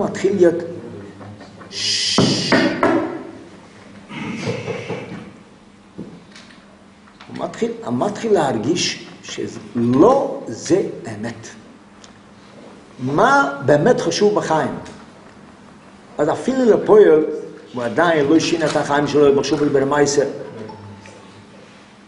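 An elderly man speaks with animation, close by, in bursts with pauses.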